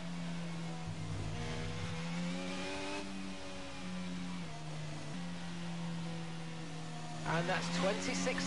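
A racing car engine hums steadily at low speed, shifting pitch as gears change.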